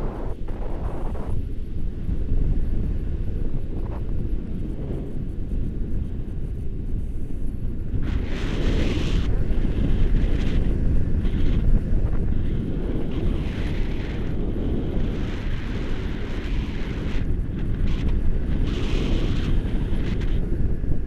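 Strong wind rushes and buffets past a microphone, outdoors high in the air.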